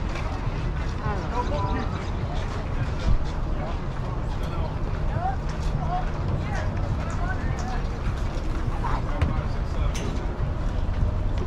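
Men talk and call out at a distance outdoors.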